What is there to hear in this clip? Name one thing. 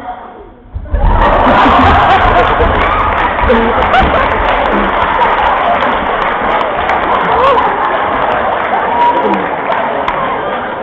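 A group of teenage boys laugh and cheer loudly close by.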